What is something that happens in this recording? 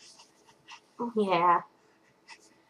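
A young woman talks brightly and playfully close by.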